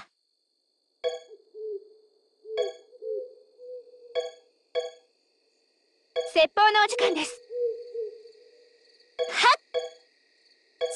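Short electronic menu chimes ring out one after another.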